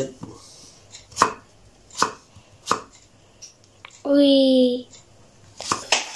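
A knife chops vegetables on a wooden board with sharp knocks.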